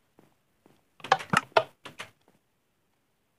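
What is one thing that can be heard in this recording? A zombie creature strikes a villager with sharp thuds.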